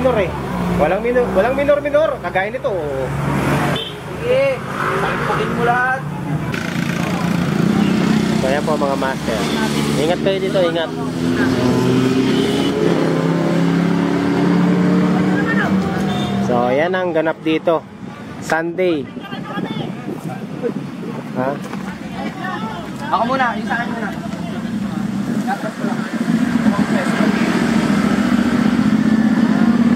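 Motorcycle engines roar past one after another.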